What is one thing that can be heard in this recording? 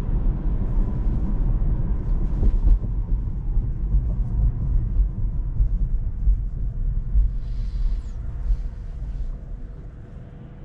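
A car's tyres and engine rumble steadily on the road, slowly quietening as the car slows.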